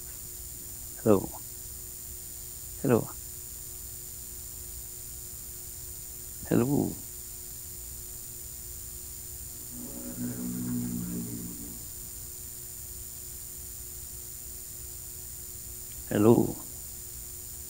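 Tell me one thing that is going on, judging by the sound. A young man laughs briefly into a microphone.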